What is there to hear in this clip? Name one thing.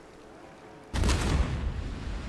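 A loud explosion booms nearby.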